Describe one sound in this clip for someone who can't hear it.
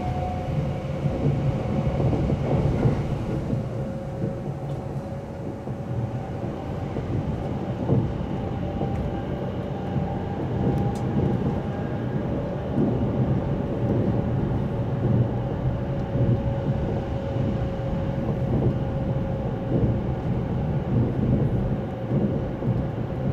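A train rumbles and rattles steadily along its track, heard from inside.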